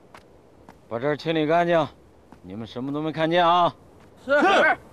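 A middle-aged man speaks firmly nearby.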